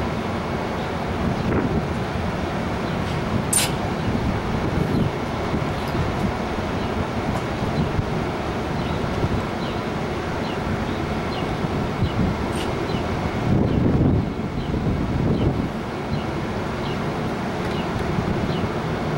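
A train idles nearby with a steady low rumble.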